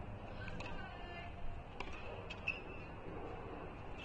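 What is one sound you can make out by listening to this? A racket strikes a tennis ball with a sharp pop.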